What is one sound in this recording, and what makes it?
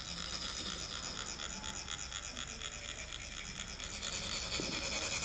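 A metal rod rasps rhythmically along a ridged funnel, making a fast, steady scraping.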